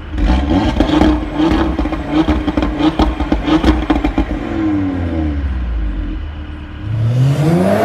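A car engine idles with loud popping and crackling from the exhaust.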